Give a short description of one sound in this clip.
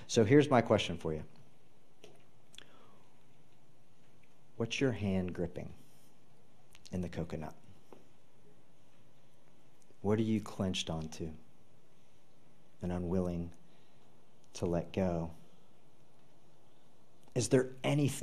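A man speaks calmly into a microphone in a large hall, with pauses between phrases.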